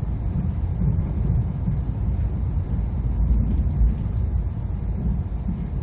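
An oncoming train rushes past close by.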